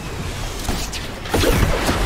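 Water splashes as a character lands in it.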